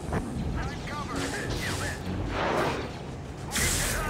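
Blaster shots zap and fire.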